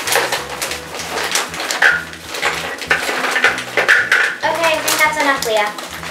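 Candy rattles and crinkles as it is poured from a plastic bag into a bowl.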